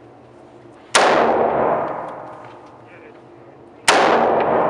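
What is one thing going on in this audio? A rifle fires loud single shots that ring out in an echoing room.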